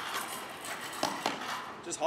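Scooter wheels roll over paving stones.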